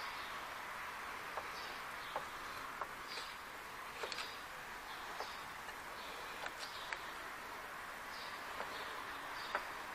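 Metal tools clink softly against metal parts.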